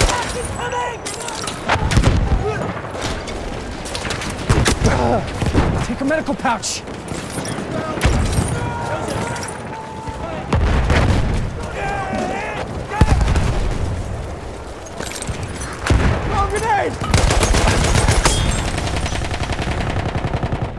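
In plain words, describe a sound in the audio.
Gunfire and explosions crack and boom throughout.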